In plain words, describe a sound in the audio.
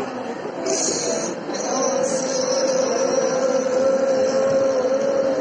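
A man chants into a microphone over loudspeakers in an echoing hall.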